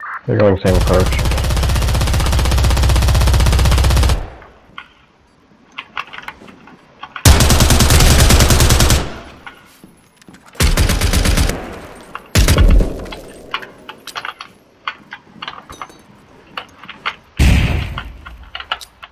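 An automatic rifle fires loud rapid bursts.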